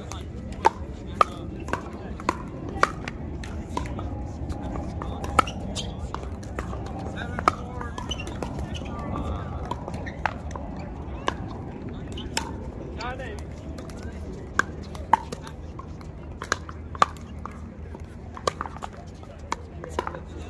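Pickleball paddles pop against a plastic ball in a rally.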